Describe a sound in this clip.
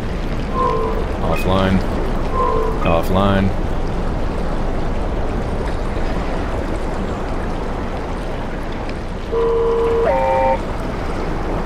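Short electronic beeps chime as menu buttons are pressed.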